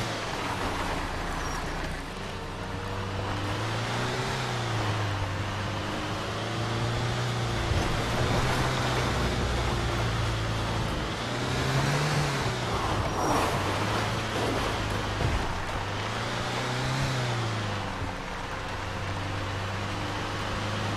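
A truck engine hums and revs up and down as it drives.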